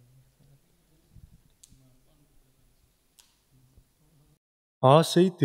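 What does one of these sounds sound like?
A man speaks quietly and calmly through a microphone.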